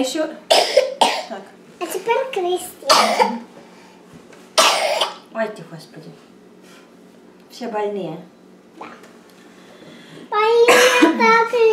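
A young girl talks and laughs excitedly close by.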